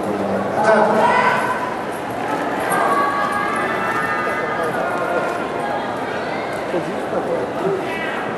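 Music plays loudly through loudspeakers in a large hall.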